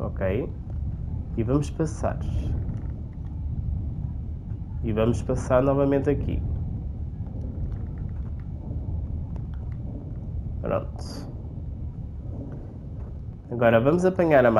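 Water rumbles in a low, steady underwater drone.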